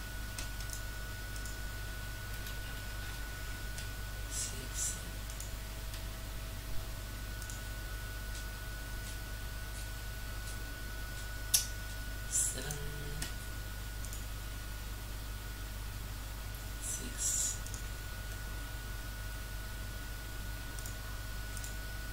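Computer keys click now and then under quick typing.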